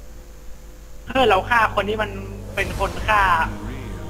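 A magical shimmering whoosh rings out.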